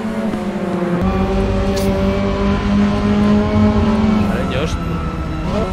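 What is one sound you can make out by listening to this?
A race car engine roars loudly from close by.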